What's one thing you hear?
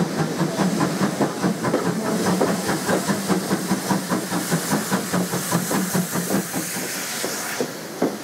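A steam locomotive chuffs hard as it works past.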